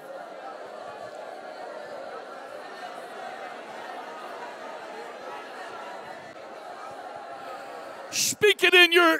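Many people murmur softly together in an echoing hall.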